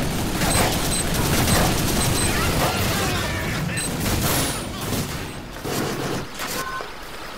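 Game gunfire and explosions crackle and boom.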